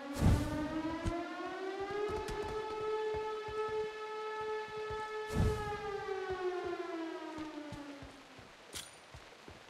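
Footsteps crunch quickly over gravel and grass.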